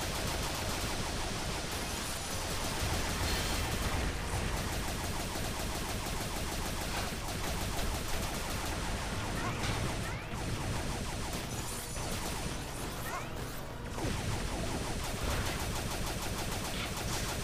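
A game character's blaster fires in quick shots.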